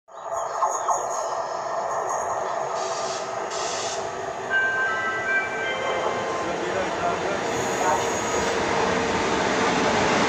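A train rumbles steadily as it approaches.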